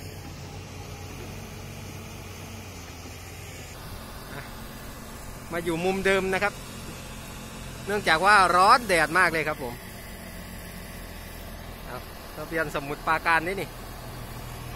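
A truck engine rumbles steadily nearby.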